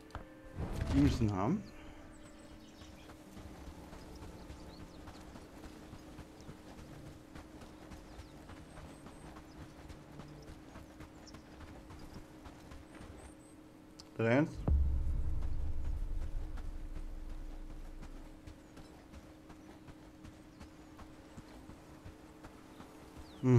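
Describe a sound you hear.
Footsteps swish and thud on grass at a steady walk.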